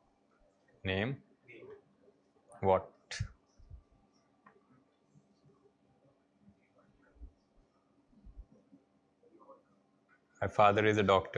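A young man speaks to a room in short bursts, with pauses.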